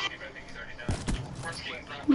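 A sniper rifle fires a single loud shot in a video game.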